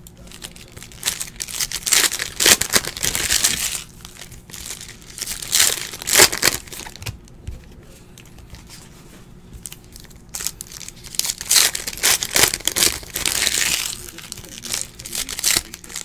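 Plastic wrapping crinkles and rustles as hands tear open a pack of cards.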